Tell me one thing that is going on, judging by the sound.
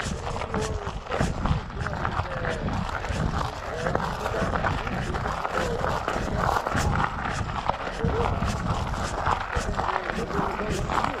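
Gravel crunches and rattles under wheels.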